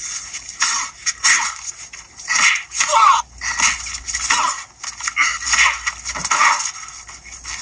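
Punches land hard in a fight.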